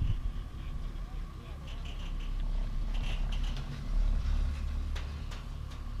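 Chairlift wheels clatter as the chair passes a lift tower.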